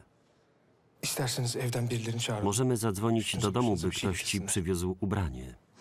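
A man speaks with emotion, close by.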